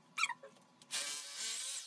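An electric drill whirs loudly.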